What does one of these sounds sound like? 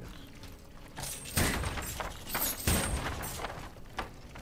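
Wooden crates smash and clatter apart.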